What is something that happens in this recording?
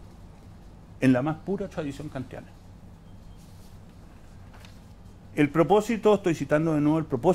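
An older man reads aloud calmly into a microphone.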